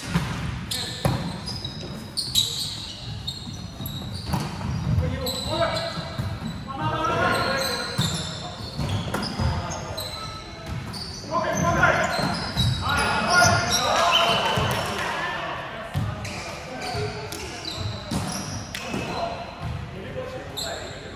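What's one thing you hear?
A volleyball is struck with sharp slaps, echoing in a large hall.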